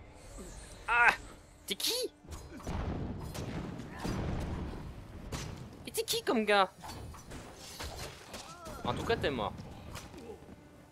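Magic spells whoosh and crackle.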